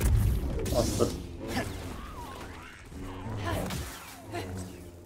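A lightsaber clashes with sharp crackling strikes.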